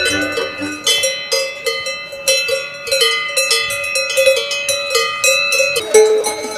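A cowbell clangs in an uneven rhythm close by.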